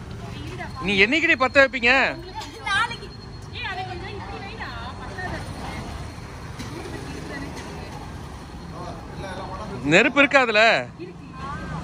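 Young girls talk and call out excitedly.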